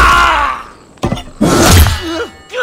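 A blade stabs into a body with a heavy thud.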